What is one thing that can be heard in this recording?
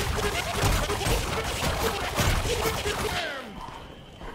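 Rapid gunfire and crackling explosions blast loudly.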